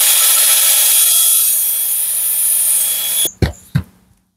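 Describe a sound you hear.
A cordless power screwdriver whirs steadily at high speed.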